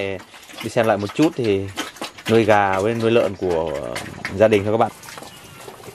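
Pigs squeal and grunt loudly close by.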